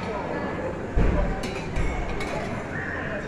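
A serving spoon scrapes and clinks against a plate.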